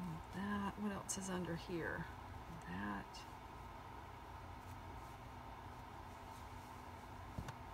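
Fabric rustles softly.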